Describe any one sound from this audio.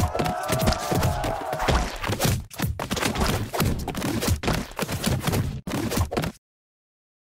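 Rapid thuds and splats of a game fight clatter busily.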